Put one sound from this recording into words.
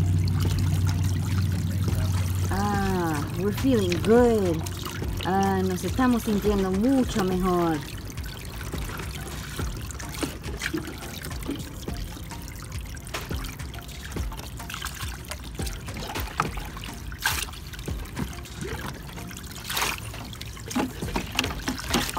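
Water splashes as a child's hands stir it.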